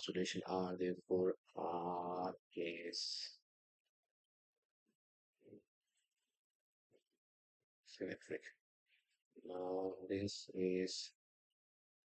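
A man speaks calmly and clearly into a close microphone, pausing now and then.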